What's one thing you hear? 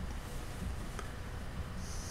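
Fingers pick up a small object with a soft click.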